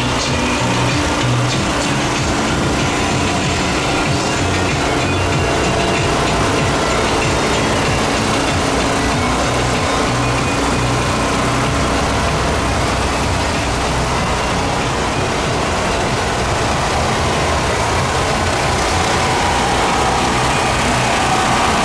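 Loud music plays from parade floats outdoors.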